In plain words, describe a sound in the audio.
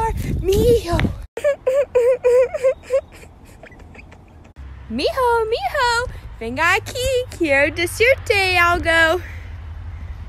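A young woman speaks excitedly and squeals close to a phone microphone.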